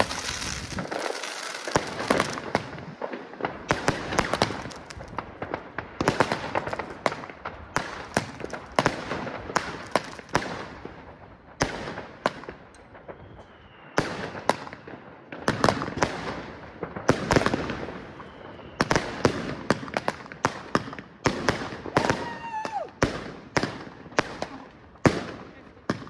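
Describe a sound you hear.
Firework rockets whistle and hiss as they shoot upward.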